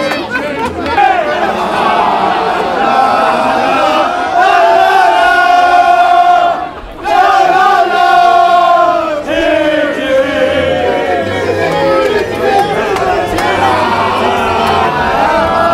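A crowd chants loudly outdoors.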